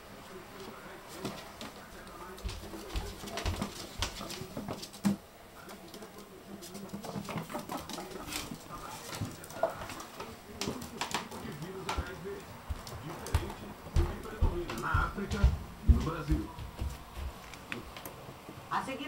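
A ferret scampers and scuffles about on a hard floor nearby.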